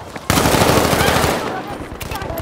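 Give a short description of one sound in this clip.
Gunshots fire rapidly in a burst.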